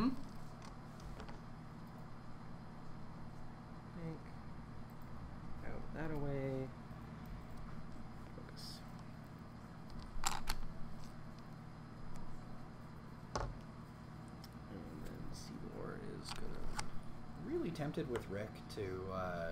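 Small plastic game pieces click and tap on a table.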